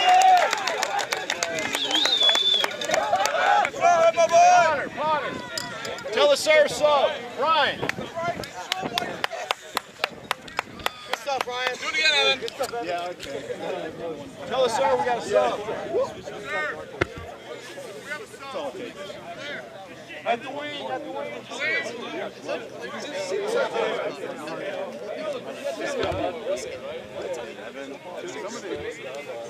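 Men talk and shout close by outdoors.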